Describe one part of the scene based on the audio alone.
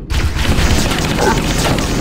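An energy shield crackles and fizzes.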